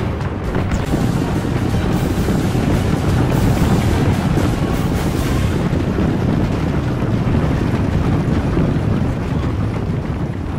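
A large crowd of soldiers runs, feet thudding and armour clattering.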